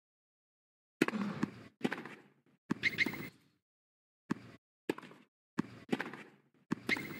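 A tennis ball is struck sharply back and forth with racket hits.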